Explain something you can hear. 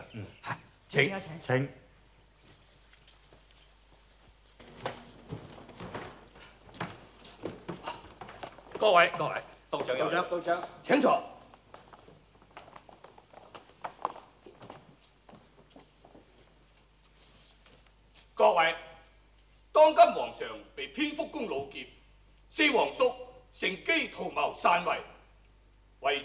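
An older man speaks forcefully.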